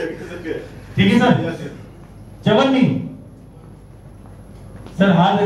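A man speaks loudly into a microphone through a loudspeaker.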